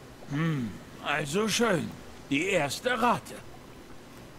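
A man speaks in a casual, slightly mocking voice.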